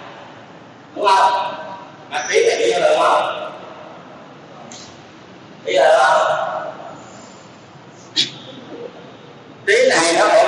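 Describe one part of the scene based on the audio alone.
An elderly man speaks calmly into a microphone, with pauses between phrases.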